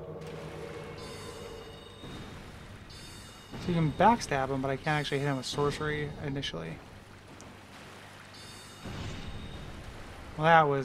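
A magic spell is cast with a shimmering whoosh.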